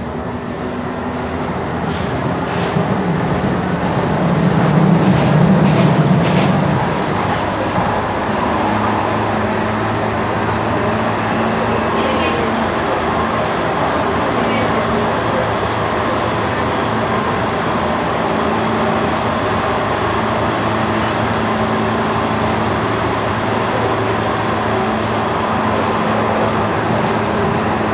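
A subway train rumbles and rattles steadily along the tracks.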